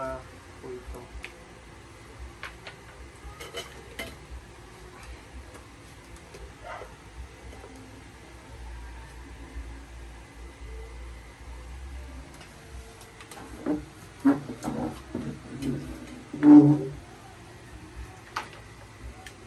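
Metal shelf poles clink and knock together.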